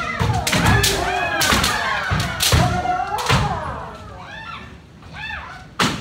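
Men and women shout loudly in an echoing hall.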